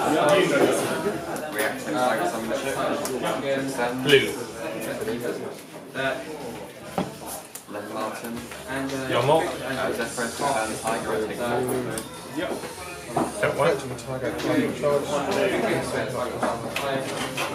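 Playing cards shuffle and tap softly onto a play mat.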